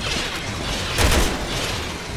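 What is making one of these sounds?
A gunshot cracks loudly.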